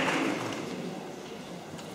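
A choir of children sings in a large hall, then fades.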